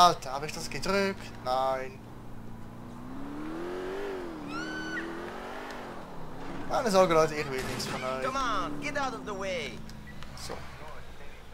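A car engine revs and hums as it drives.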